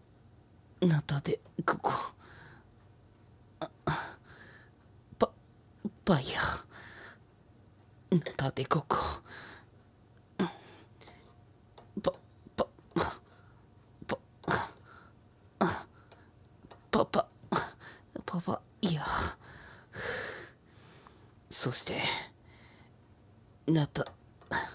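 A metal spoon clinks against a tin can.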